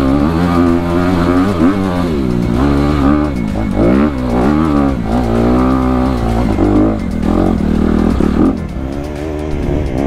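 A dirt bike engine revs hard up and down close by.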